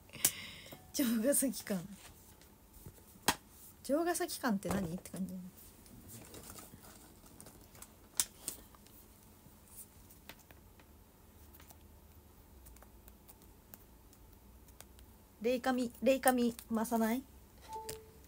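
A young woman speaks softly and haltingly, close to a microphone.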